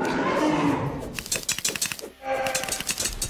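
Game sound effects of hits and explosions clatter rapidly.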